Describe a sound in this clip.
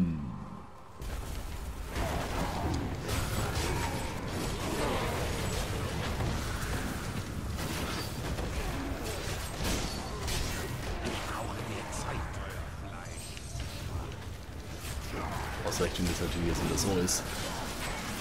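Spells, blows and explosions clash loudly and constantly in a fierce battle.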